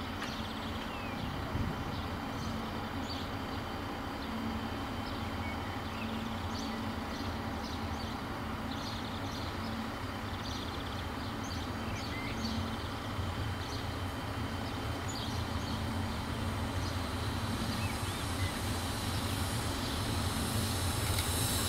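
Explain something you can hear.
A steam locomotive chugs as it slowly approaches, growing louder.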